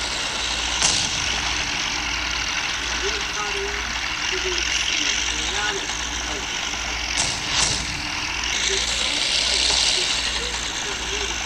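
A tank engine rumbles as the tank drives.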